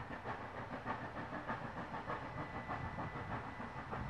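A steam locomotive chuffs rhythmically in the distance.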